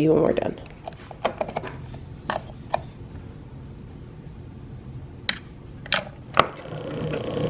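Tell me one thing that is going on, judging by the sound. A plastic pod clicks into a coffee maker.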